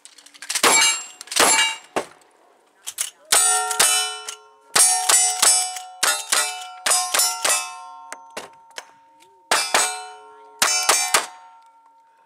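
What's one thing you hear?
A rifle fires rapid shots outdoors, each crack loud and sharp.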